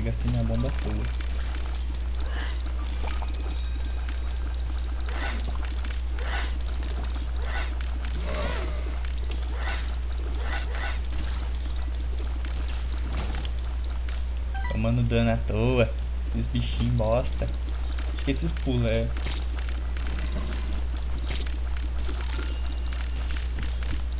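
Small watery shots pop and splat rapidly.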